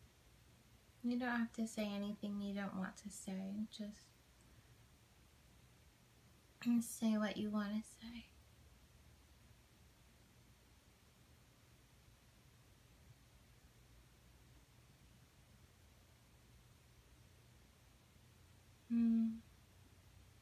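A young woman speaks calmly and slowly, close by, with long pauses.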